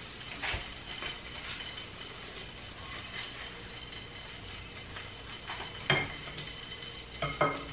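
A spoon scrapes and clicks against a frying pan.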